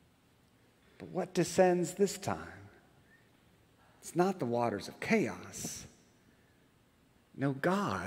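A middle-aged man speaks calmly into a microphone, in pauses.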